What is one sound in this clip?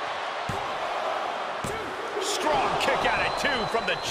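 A referee's hand slaps the mat.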